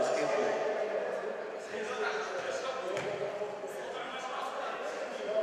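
Feet shuffle and scuff on a mat.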